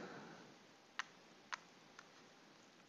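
Small game pieces click lightly on a board.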